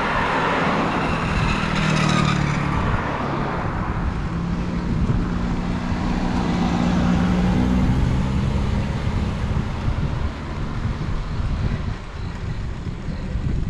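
Wind rushes and buffets loudly against the microphone.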